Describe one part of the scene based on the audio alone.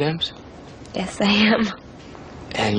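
A young woman talks softly, close by.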